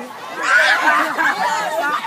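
A teenage boy laughs loudly nearby.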